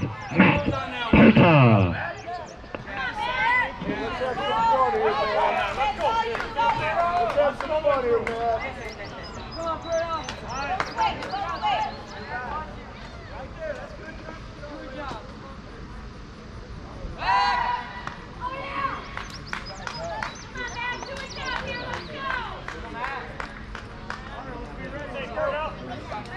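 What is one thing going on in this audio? Several spectators talk and call out nearby, outdoors.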